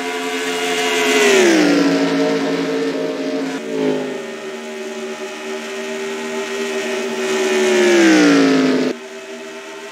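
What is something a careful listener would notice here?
A racing car engine roars close by, then drops in pitch as it passes.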